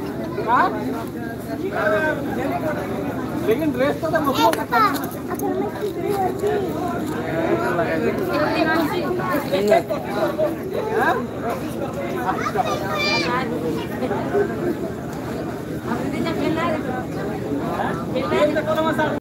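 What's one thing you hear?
Children shout and cheer excitedly close by.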